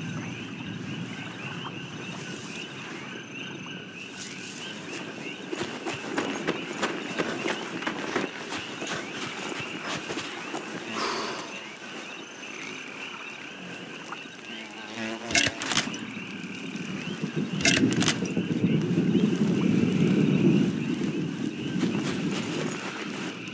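Footsteps crunch softly through dirt and dry grass.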